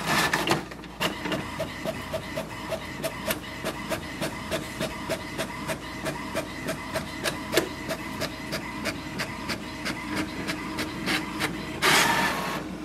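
A printer whirs and clicks rapidly as it feeds paper.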